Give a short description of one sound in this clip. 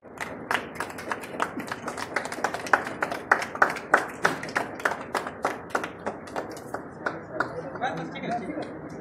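A group of people clap their hands in quick bursts.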